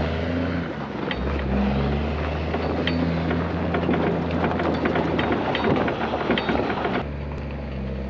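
A loader's diesel engine roars close by.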